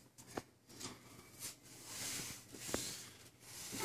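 Bodies shuffle and thump on a padded mat.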